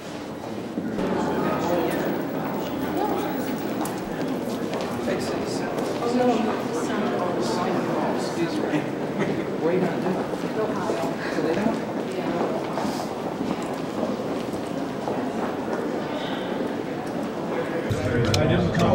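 Footsteps click on a hard floor in an echoing hallway.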